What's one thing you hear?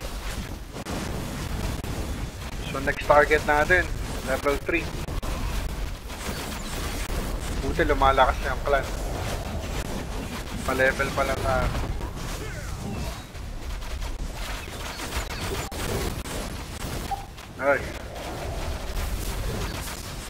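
Game spells crackle and blasts rumble in a busy battle.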